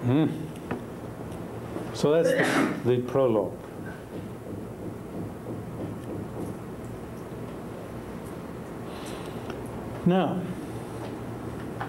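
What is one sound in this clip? An older man speaks calmly and close by, in bursts with long pauses.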